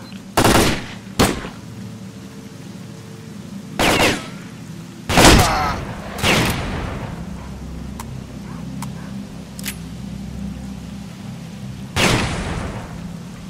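Loud shotgun blasts boom with a short echo.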